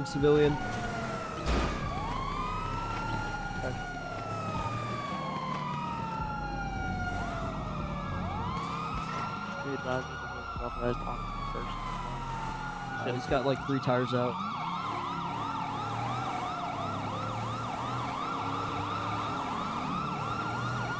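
A police siren wails steadily, rising and falling throughout.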